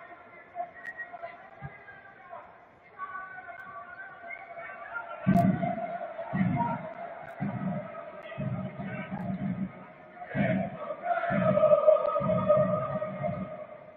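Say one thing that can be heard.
A large crowd chants and sings steadily in a stadium.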